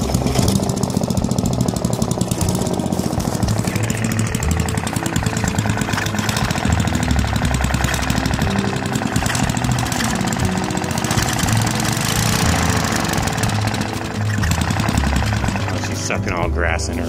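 A small petrol engine runs with a fast, steady chugging close by.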